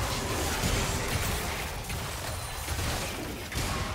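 Video game spell effects zap and crackle.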